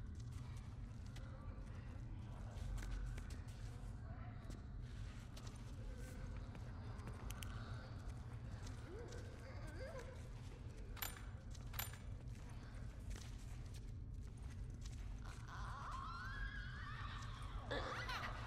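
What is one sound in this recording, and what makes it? Footsteps shuffle softly on a hard floor.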